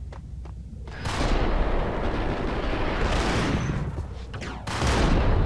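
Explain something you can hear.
Guns fire in rapid bursts, booming loudly.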